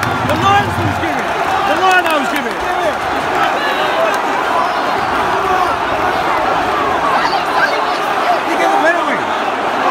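Men close by shout and chant with excitement.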